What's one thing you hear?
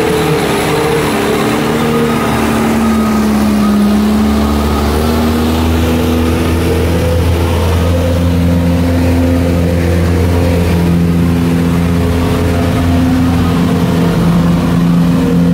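A road roller's diesel engine rumbles steadily close by.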